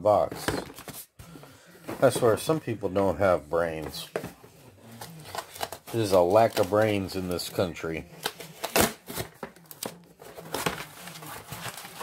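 A cardboard box scrapes and taps on a table.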